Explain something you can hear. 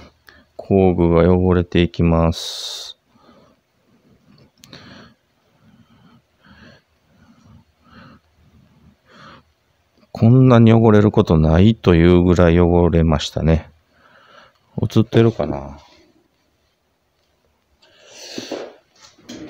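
Metal wrenches clink softly against each other.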